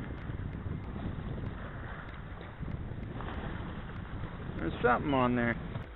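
Small waves splash against rocks close by.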